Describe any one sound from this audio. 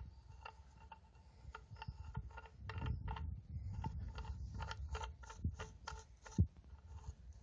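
A metal part clicks and ticks lightly as it is handled.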